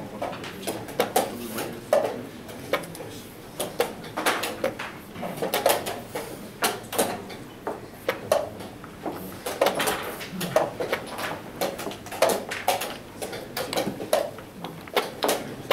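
Chess clock buttons are pressed with sharp clicks.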